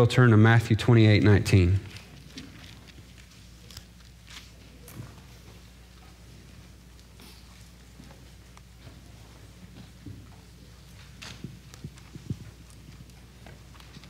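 Pages rustle as a man turns them.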